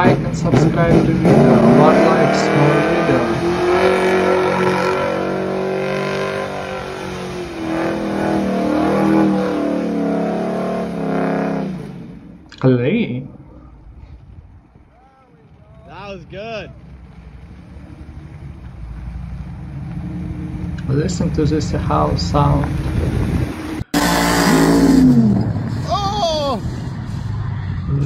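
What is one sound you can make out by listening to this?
A car engine roars and revs loudly.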